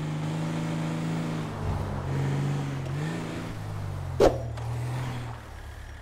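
A car engine hums as the car drives along a road.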